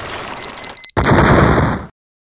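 A loud crash and clatter of metal bursts out.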